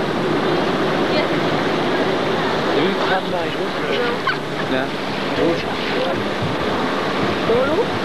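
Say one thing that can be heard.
Strong wind gusts and rumbles across the microphone outdoors.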